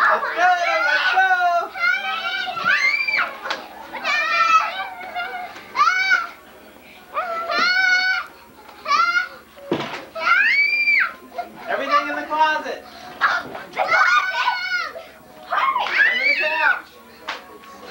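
Young girls shriek and squeal excitedly close by.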